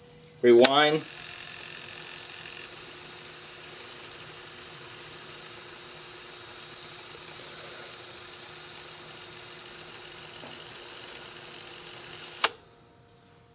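A cassette player plays a tape with a steady soft hiss.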